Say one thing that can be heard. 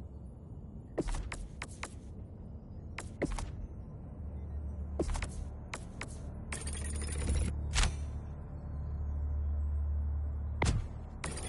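Short game menu clicks tick quickly one after another.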